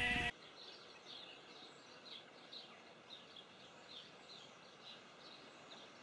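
A bird chirps repeatedly in short high calls.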